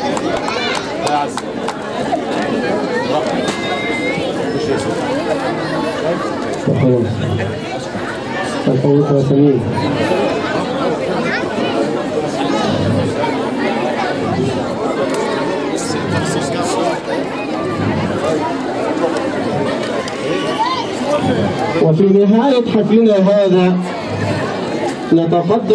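A crowd chatters and calls out loudly nearby.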